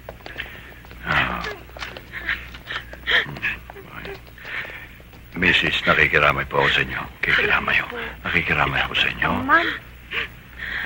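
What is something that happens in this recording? A man speaks in a low, solemn voice.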